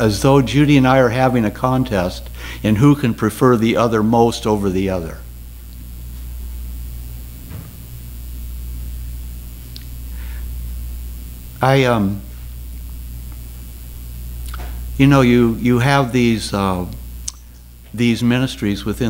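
An older man speaks calmly through a microphone, with pauses.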